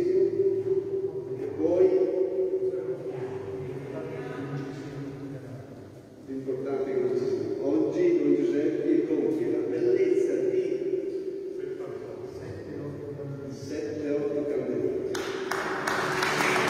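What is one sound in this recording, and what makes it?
An elderly man chants slowly through a microphone in a large echoing hall.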